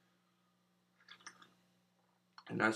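A young man sips a drink from a mug.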